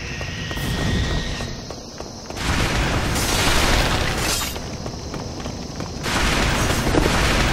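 Footsteps run on a stone floor.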